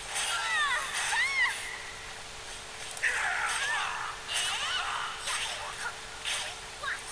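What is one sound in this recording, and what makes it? Blades whoosh and clash in quick sword strikes.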